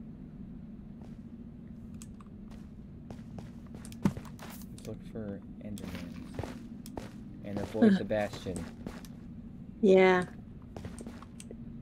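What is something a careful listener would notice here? Footsteps tread softly on spongy ground.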